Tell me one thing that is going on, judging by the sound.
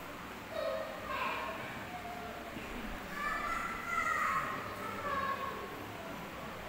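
A man talks nearby in a large echoing hall.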